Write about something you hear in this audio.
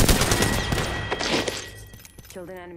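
A gun fires in a rapid loud burst.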